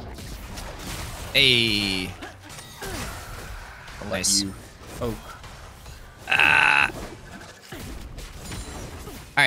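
Game spell effects whoosh and crackle in short bursts.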